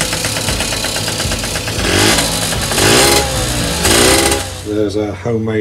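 A small motorcycle engine revs loudly as the throttle is twisted.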